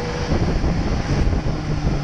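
A truck rumbles by close alongside.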